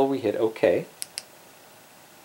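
A remote control button clicks softly.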